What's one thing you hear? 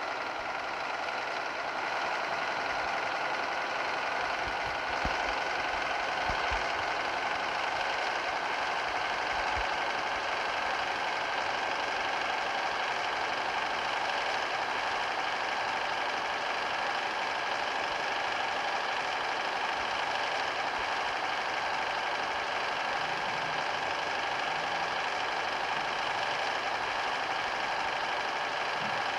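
A bus engine hums steadily and slowly rises in pitch.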